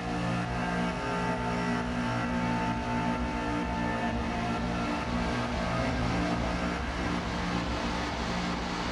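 Electronic music drones and pulses with layered steady tones.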